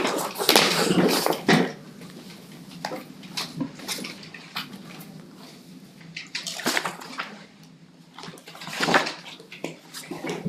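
Papers rustle and shuffle.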